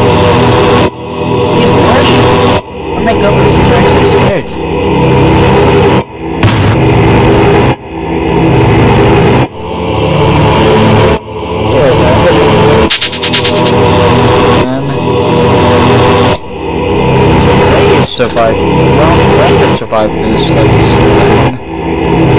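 A young man speaks with animation through a webcam microphone.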